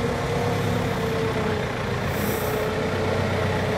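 A forklift engine hums steadily nearby.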